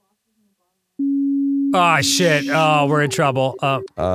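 A steady, low electronic warning tone sounds.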